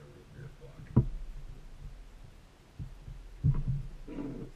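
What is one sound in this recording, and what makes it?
Objects knock on a wooden table.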